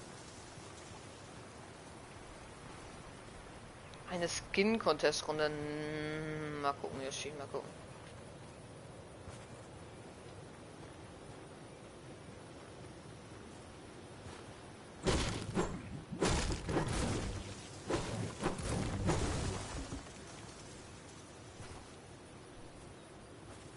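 Footsteps crunch on snow at a quick run.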